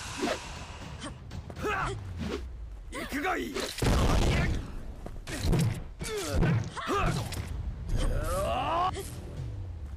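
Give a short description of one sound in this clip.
Sword blows clash and ring in a game fight.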